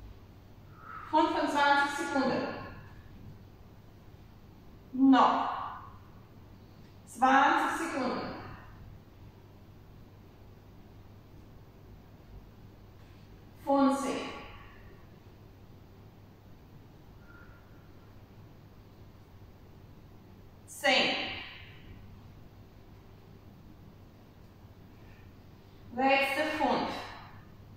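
A young woman speaks in short bursts in a large echoing hall.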